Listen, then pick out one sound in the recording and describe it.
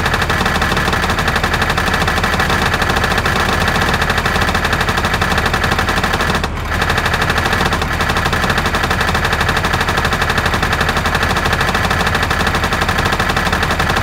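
A diesel truck engine idles with a steady, throbbing rumble.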